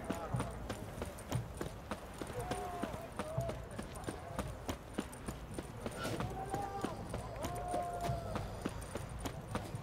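Running footsteps thud quickly on stone and dirt.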